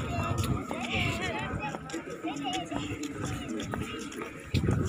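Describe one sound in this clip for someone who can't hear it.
A young girl chatters in a high voice nearby.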